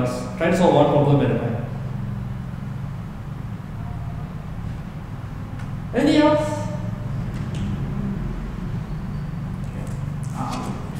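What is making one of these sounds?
A young man speaks briefly and casually through a microphone.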